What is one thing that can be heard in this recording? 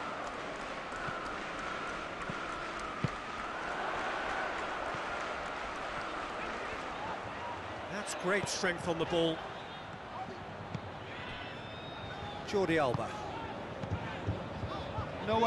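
A large stadium crowd murmurs steadily.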